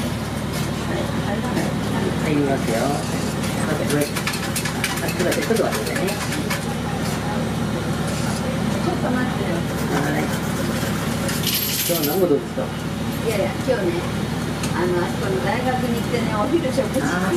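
An elderly woman talks calmly, close by.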